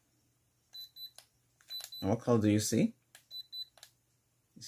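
A handheld thermometer beeps briefly.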